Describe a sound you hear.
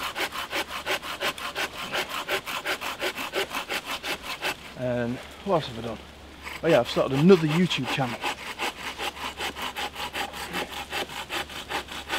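A hand saw cuts through wood with quick, steady strokes.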